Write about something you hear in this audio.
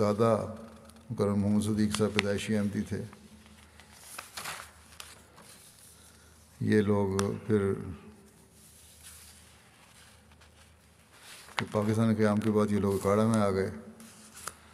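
An elderly man speaks calmly into a microphone, with pauses between phrases.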